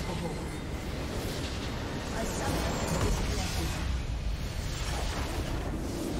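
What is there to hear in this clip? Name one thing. A base structure explodes with a loud boom.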